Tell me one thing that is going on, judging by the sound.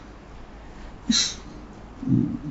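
A man coughs softly.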